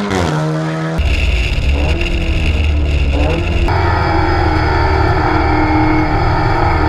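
A race car engine drones loudly from inside the cabin.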